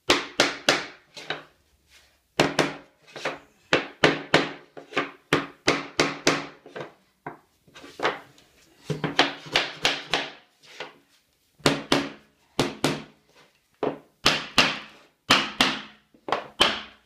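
A hammer taps sharply on a wooden block against a floorboard, with a slight ringing echo.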